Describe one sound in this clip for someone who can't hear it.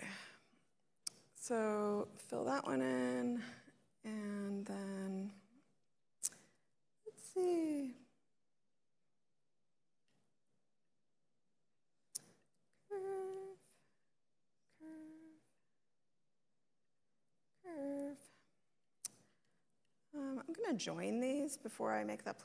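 A woman speaks calmly through a microphone, in short phrases with pauses.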